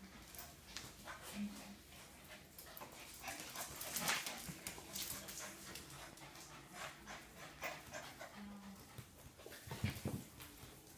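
Two dogs scuffle and play on a hard floor.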